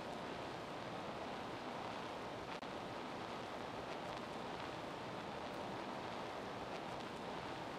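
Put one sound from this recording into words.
Blocks thud softly into place.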